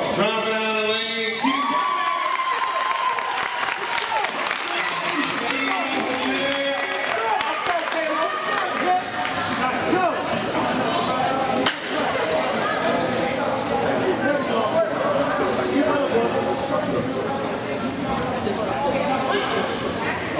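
Young girls and onlookers shout and call out in an echoing hall.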